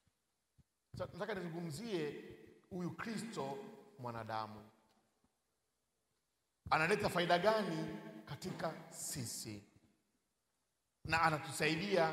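A man speaks emphatically through a microphone in a large echoing hall.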